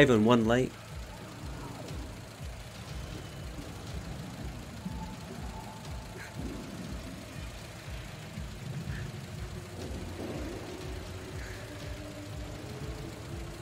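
A game car's engine hums at idle.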